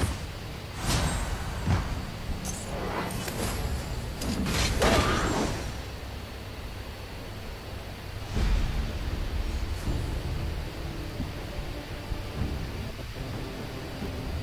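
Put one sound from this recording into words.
Game fighting sound effects burst and clash.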